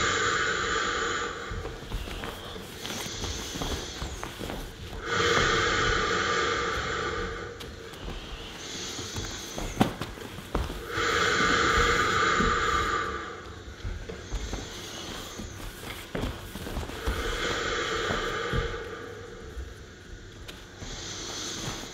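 Bare feet thud and slide on a floor.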